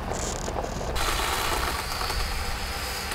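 A pole saw buzzes while cutting through branches.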